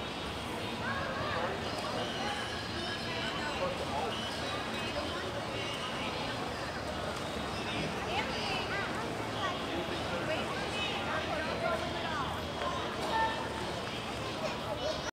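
A crowd of children and adults shouts and chatters in the distance outdoors.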